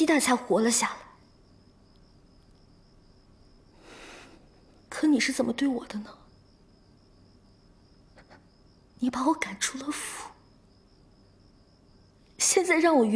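A young woman speaks close by in an upset, tearful voice.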